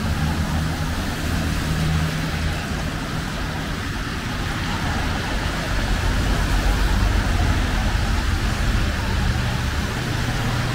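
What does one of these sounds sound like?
Traffic rumbles steadily along a street.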